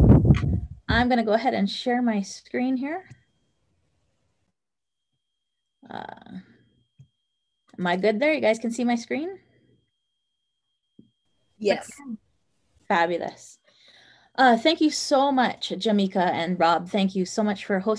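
A woman talks calmly over an online call.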